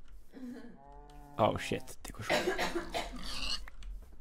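A pig grunts nearby.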